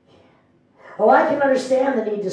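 A woman sings loudly into a microphone.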